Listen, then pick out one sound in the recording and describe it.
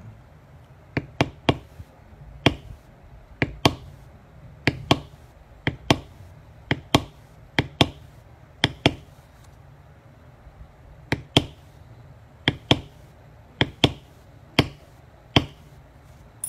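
A mallet thumps repeatedly on a tool against leather.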